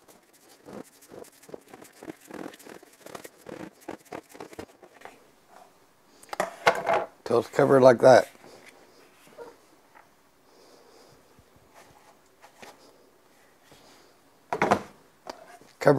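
A bowl clatters softly on a counter.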